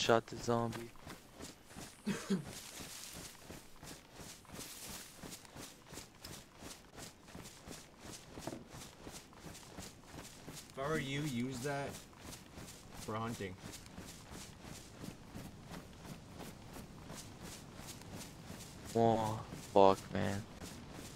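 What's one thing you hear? Footsteps crunch steadily through leaves and undergrowth.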